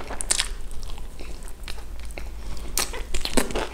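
Crispy fried chicken crunches as a young man bites into it.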